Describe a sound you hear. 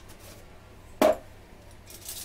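A plastic jar lid clicks open.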